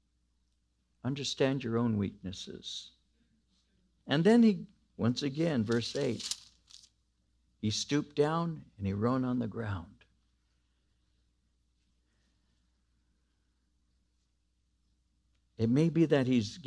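An elderly man speaks calmly and clearly into a microphone, pausing between phrases.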